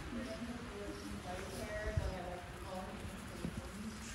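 A goat tugs and rustles hay from a rack.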